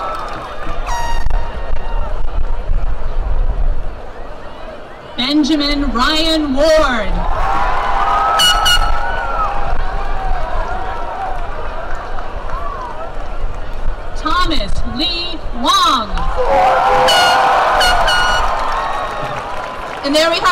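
A crowd cheers and whistles in the open air.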